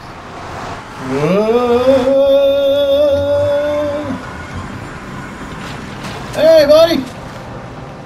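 A second man talks and exclaims into a microphone, close by.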